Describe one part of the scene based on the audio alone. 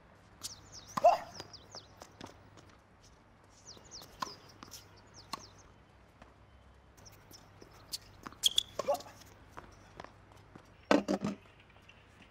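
A tennis racket hits a tennis ball.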